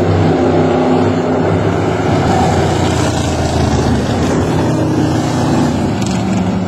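Several racing car engines roar loudly as they speed past.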